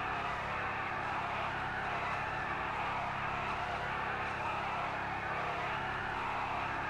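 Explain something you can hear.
A car engine roars steadily.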